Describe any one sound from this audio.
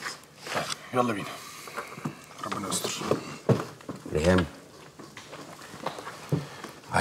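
A second man speaks calmly.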